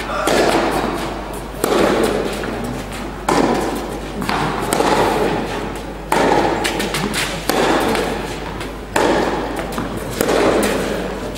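Tennis balls are struck back and forth with sharp pops that echo through a large hall.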